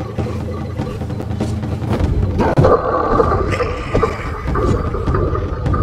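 A blade strikes a creature's flesh with heavy, wet thuds.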